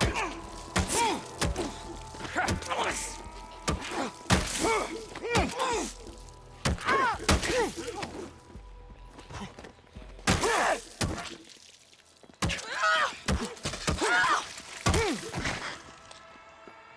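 Heavy blows strike flesh with hard thuds.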